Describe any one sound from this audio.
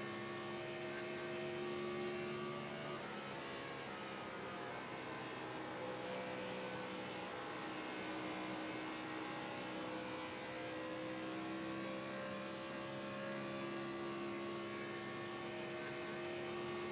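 A race car engine roars steadily at high speed, with its pitch shifting slightly as it goes around the bends.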